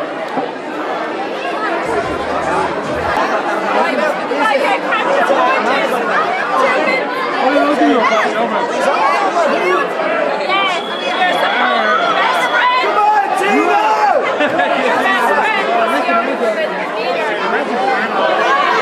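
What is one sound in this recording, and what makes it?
A large crowd of men and women chatters and shouts loudly in an echoing hall.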